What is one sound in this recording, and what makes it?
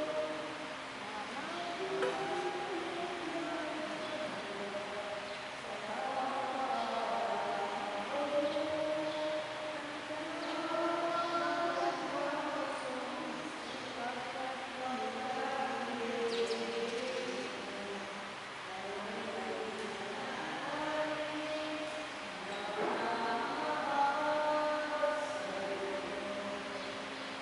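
A man chants slowly through a microphone, echoing in a large hall.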